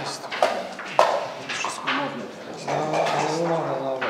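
Dice rattle in a cup.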